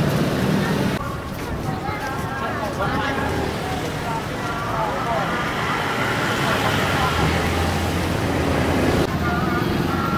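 Young people chatter nearby while walking outdoors.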